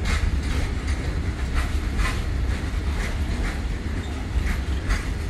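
A long freight train rumbles steadily past.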